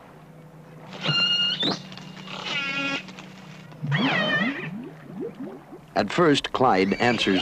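A whale calls underwater with high, wavering whistles.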